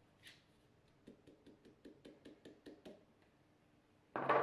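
Flour is tapped out of a tub into a bowl.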